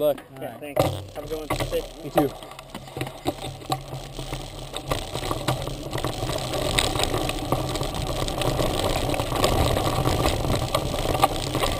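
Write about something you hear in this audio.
Wind rushes past a moving bike.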